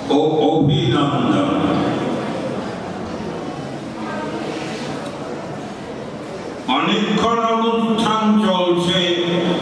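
An elderly man speaks steadily into a microphone, heard through loudspeakers.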